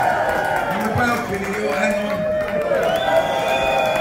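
A crowd sings along and cheers.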